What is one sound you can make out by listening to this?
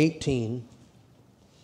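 A middle-aged man speaks briefly and loudly through a microphone, then falls quiet.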